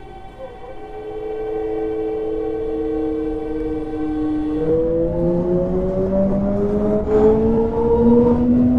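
An electric train motor whines, rising in pitch as the train picks up speed.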